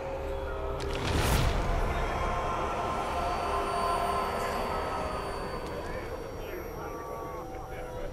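A man groans and retches loudly.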